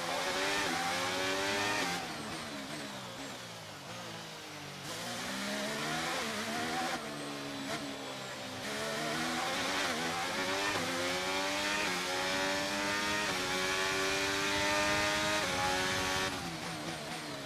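A racing car engine screams, rising and falling in pitch as it shifts gears and brakes for corners.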